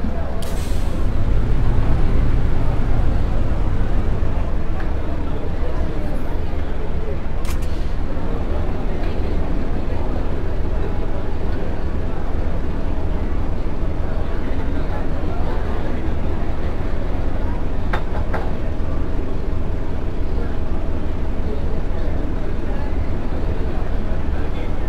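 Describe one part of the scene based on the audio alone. A bus engine rumbles steadily at low speed.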